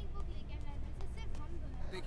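Footsteps of a young woman walk quickly across a hard floor.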